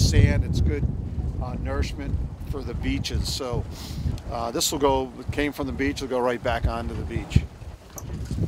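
An older man talks calmly close by.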